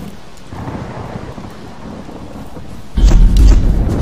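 A torch flame crackles.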